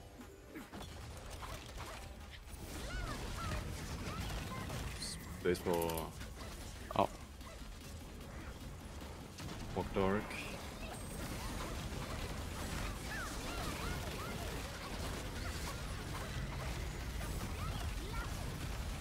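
Game spells crackle and boom with electric blasts.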